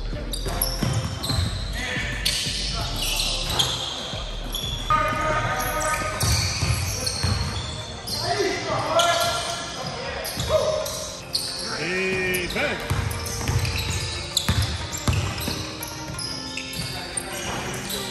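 Basketballs bounce on a wooden floor in an echoing gym.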